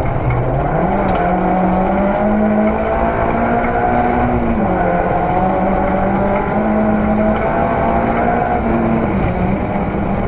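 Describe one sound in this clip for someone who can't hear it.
A car engine roars loudly from inside the cabin, revving up and down through the gears.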